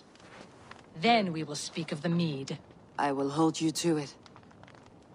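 A second woman answers calmly.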